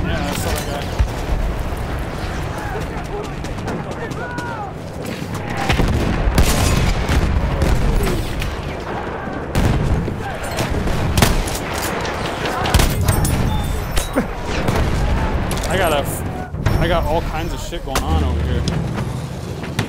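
Rifle shots crack close by.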